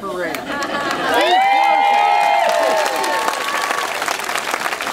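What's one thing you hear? A large crowd cheers and whoops loudly outdoors.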